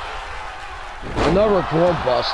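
A body slams heavily onto a ring mat.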